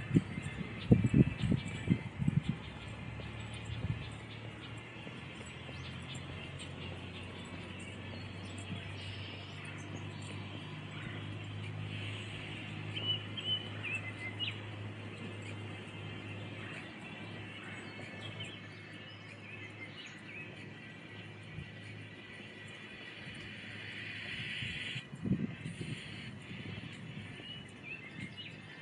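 Footsteps tap softly on a paved path.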